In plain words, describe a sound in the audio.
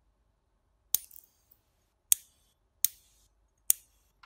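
A small electric spark snaps and crackles in sharp bursts.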